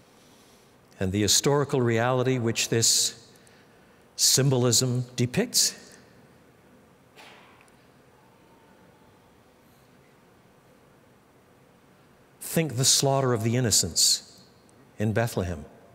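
An older man speaks calmly and slowly into a close microphone, with long pauses.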